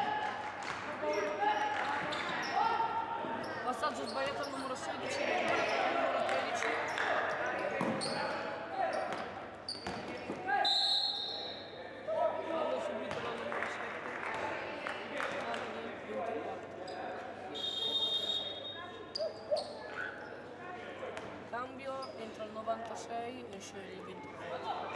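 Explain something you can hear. Basketball shoes squeak on a hard floor in a large echoing hall.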